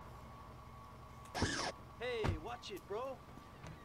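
A car door opens and shuts.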